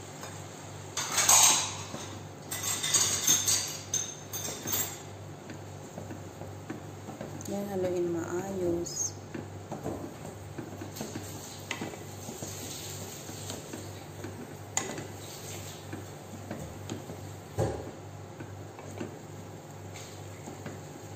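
A wooden spoon stirs and scrapes noodles in a metal pot.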